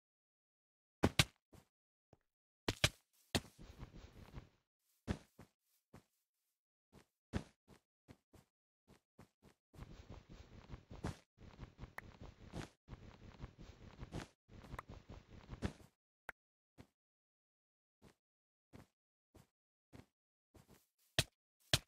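Footsteps patter quickly on hard blocks.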